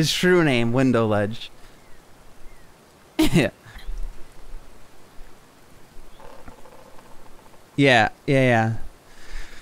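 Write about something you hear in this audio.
A man talks animatedly into a close microphone, in short bursts.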